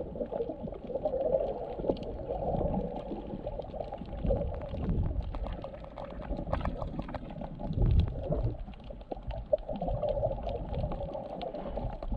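Water rumbles and swirls in a muffled, underwater hush.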